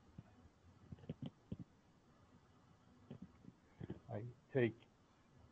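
An older man speaks calmly in short bursts over an online call.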